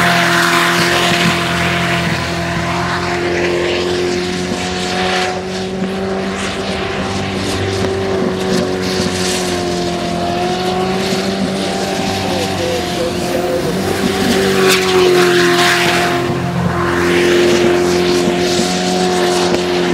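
Water sprays and hisses behind a speeding boat.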